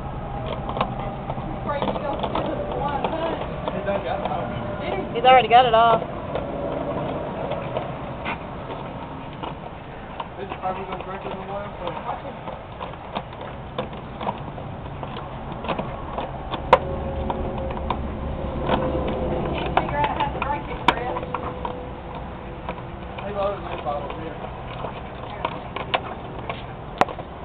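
A dog chews on a plastic bottle, which crackles and clicks.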